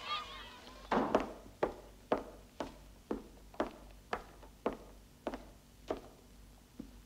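Boots step across a hard floor.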